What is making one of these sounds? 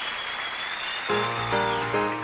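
A piano plays.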